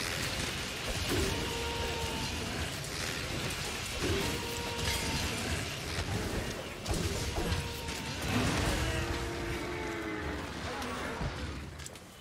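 A large beast growls and roars.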